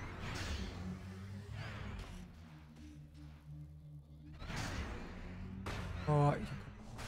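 Air whooshes past as a spacecraft swoops by.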